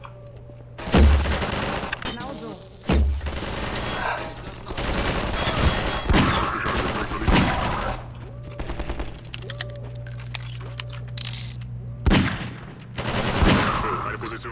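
Gunshots crack loudly one after another.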